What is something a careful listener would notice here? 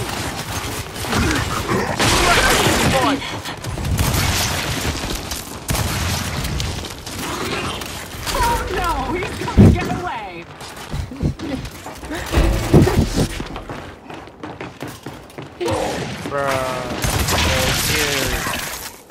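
Gunfire bursts loudly and repeatedly.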